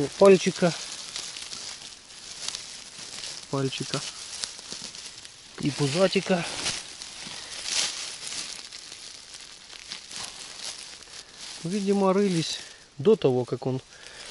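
Dry leaves rustle as a hand digs on the ground.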